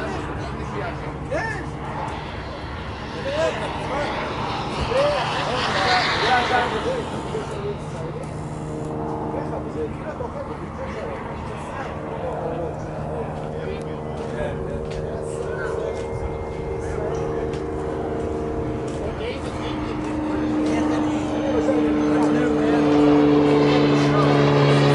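A jet engine whines and roars as a small jet flies past, growing louder toward the end.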